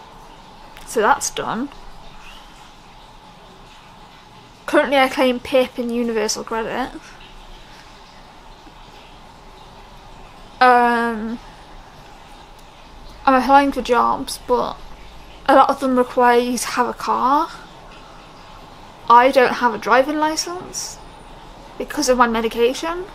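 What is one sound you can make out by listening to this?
A young woman talks close to a microphone, with pauses between phrases.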